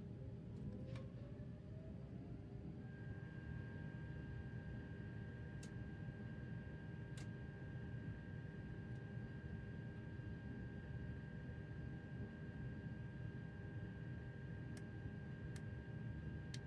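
Train wheels click now and then over rail joints.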